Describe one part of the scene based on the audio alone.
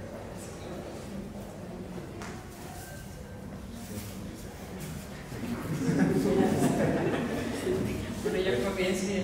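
A woman speaks into a microphone nearby.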